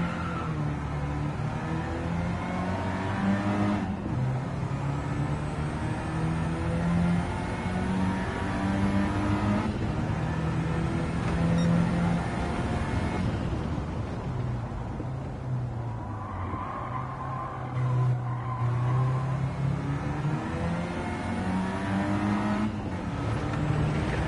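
A car engine revs hard, climbing in pitch and dropping with each gear change.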